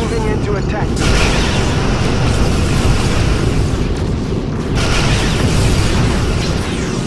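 Laser beams fire in rapid bursts.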